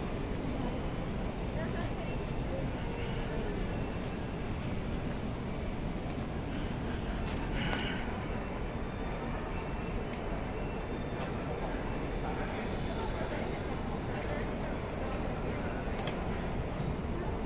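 A murmur of distant voices fills a large indoor hall.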